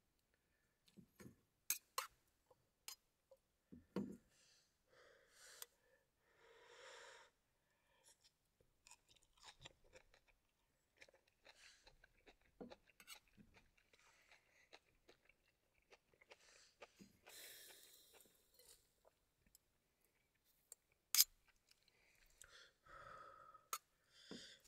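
Chopsticks clink against a metal bowl.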